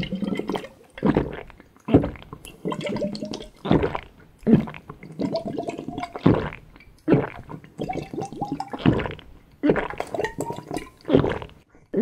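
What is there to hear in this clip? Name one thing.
Bubbles gurgle in a liquid as a man drinks.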